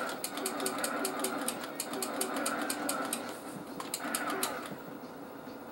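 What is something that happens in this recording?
Upbeat video game music with a fast ticking beat plays from a small television speaker.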